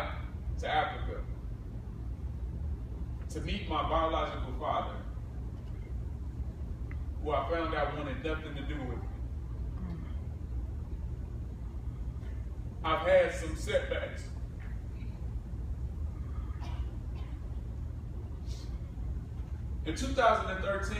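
A man speaks into a microphone in an echoing room, in short phrases with long pauses.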